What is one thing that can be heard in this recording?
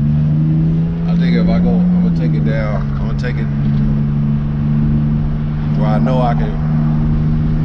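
A man talks with animation, close to the microphone.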